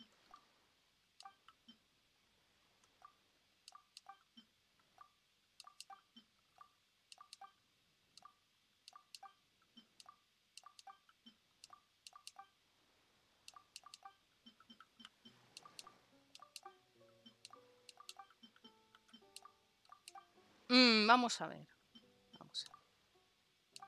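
Soft menu clicks tick again and again as a selection moves between options.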